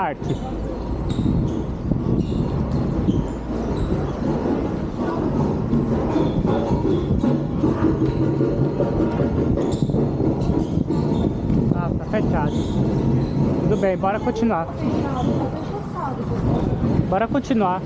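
Bicycle tyres roll over a paved street.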